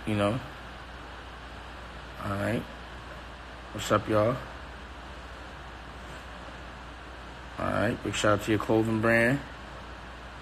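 A man speaks calmly close to a phone microphone, in short bursts with pauses.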